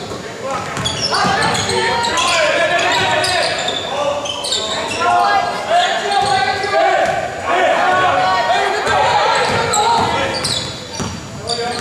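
Players call out to each other across an echoing gym.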